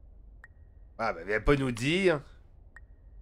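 A man speaks briefly and with animation into a close microphone.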